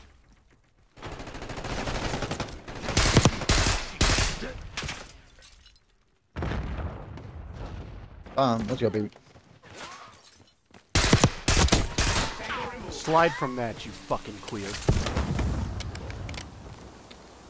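Rifle shots crack in rapid bursts close by.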